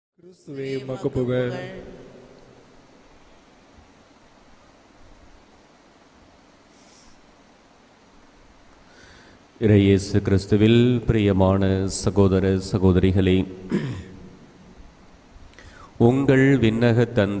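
A man speaks into a microphone in a reverberant hall, in a measured preaching voice.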